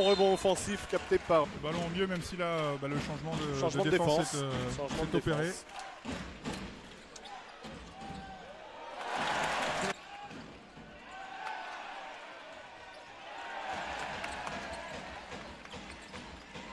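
A basketball thuds as it bounces on the court.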